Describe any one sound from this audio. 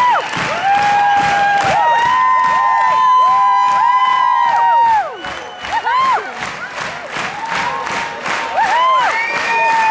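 A large crowd cheers loudly in an echoing hall.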